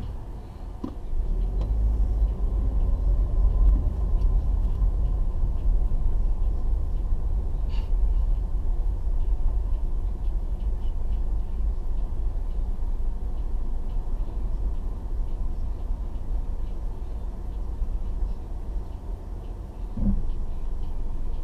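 Road noise hums as the car moves forward.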